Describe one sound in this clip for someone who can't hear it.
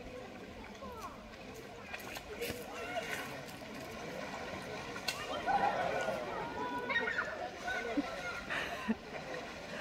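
Water splashes as an elephant wades out of a pond.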